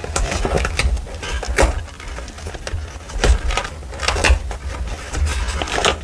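Fingers riffle and rustle through stacked paper pages close by.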